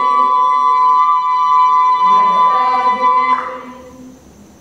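A choir of young men and women sings together in harmony in an echoing hall.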